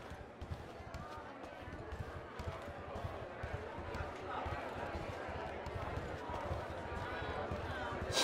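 A crowd of men and women murmurs and chatters.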